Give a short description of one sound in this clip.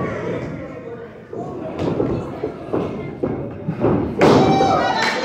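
Bodies thud and slap against a wrestling mat.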